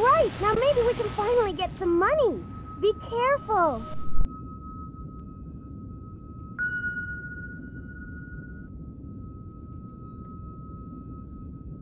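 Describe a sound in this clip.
A glowing crystal gives off a steady, high hum.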